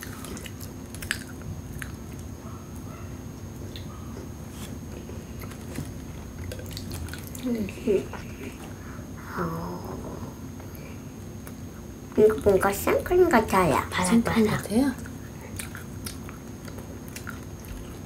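Girls chew and munch on crunchy snacks.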